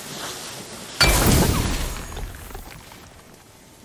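A fiery blast bursts and crackles against stone, then fades.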